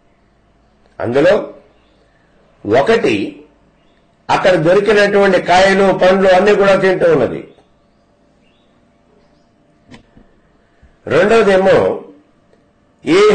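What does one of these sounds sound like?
An elderly man speaks calmly and closely into a microphone, in short phrases with pauses.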